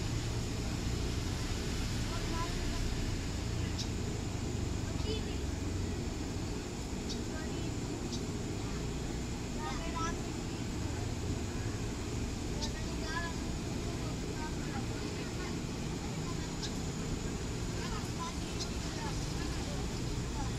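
An electric train rumbles slowly along the tracks, close by.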